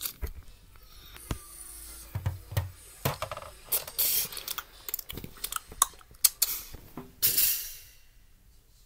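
A plastic toy knocks and clatters.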